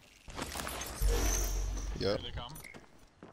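A game sound effect whooshes loudly.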